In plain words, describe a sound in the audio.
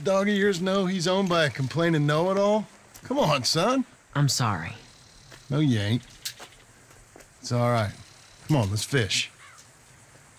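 A man speaks calmly in a low voice, close by.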